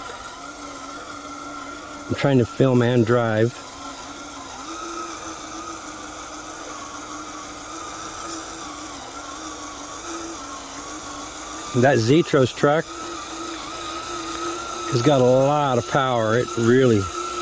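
A small electric motor whirs steadily.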